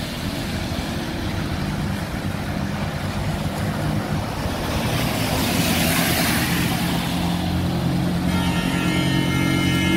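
A vehicle engine rumbles steadily close by.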